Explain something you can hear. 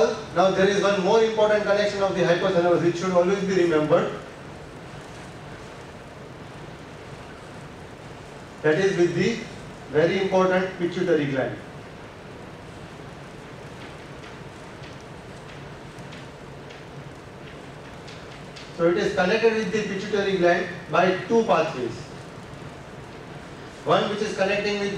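A man lectures calmly and clearly through a microphone, in pauses.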